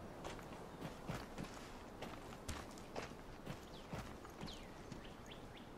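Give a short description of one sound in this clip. Footsteps crunch on rocky ground at a steady walking pace.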